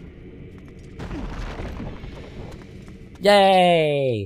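A heavy metal door rumbles open.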